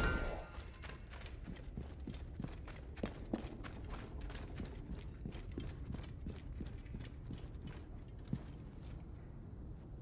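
Quick footsteps run up stone steps.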